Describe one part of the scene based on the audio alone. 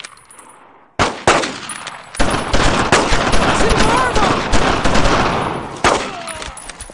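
A rifle fires close by in sharp single shots.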